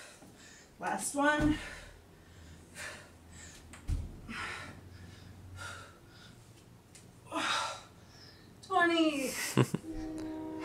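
A young woman speaks briefly between exercises.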